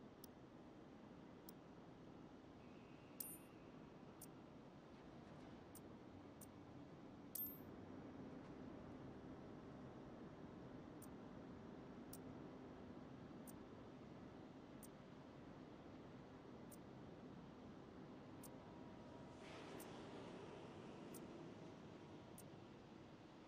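Soft menu clicks sound as selections change.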